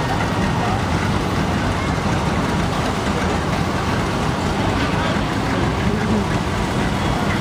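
An old tractor engine putters and chugs nearby.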